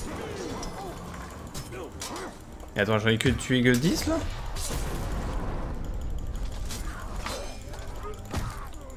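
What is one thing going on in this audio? Swords clash and strike repeatedly in a fight.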